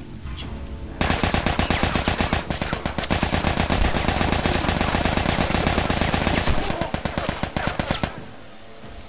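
Guns fire in rapid bursts of shots.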